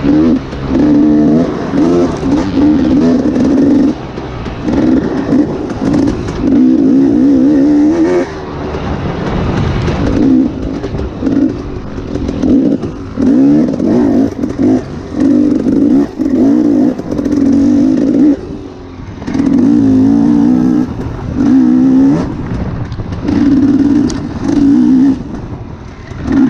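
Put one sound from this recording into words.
Tyres crunch over dry leaves and dirt.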